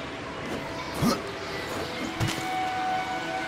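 Heavy thuds sound on rock.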